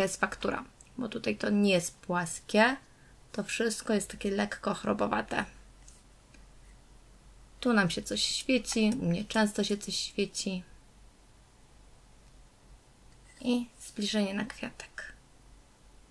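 A woman talks calmly, close to the microphone.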